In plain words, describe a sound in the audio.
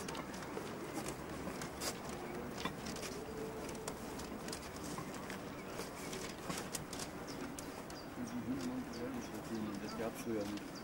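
Steel wheels click and clatter over rail joints.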